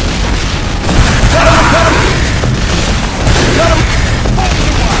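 Rockets explode with loud booms.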